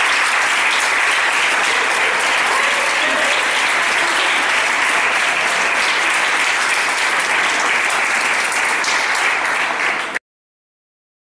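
A large crowd of young people murmurs and chatters in an echoing hall.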